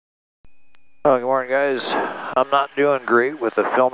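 A middle-aged man talks with animation through a headset microphone.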